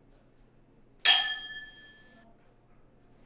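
Wine glasses clink together with a bright ringing chime.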